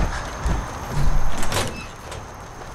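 A metal door clanks open.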